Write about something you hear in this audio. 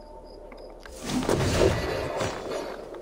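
A body lands heavily with a thud on a hillside.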